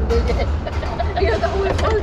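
A middle-aged woman laughs nearby.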